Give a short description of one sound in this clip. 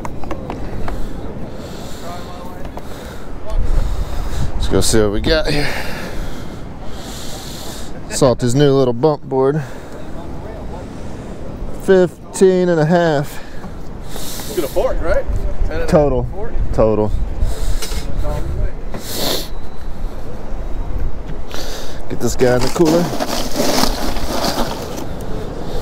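Wind gusts against the microphone outdoors.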